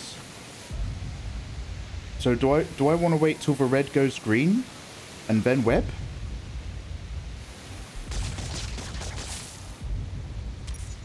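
Water sprays and hisses from a burst pipe.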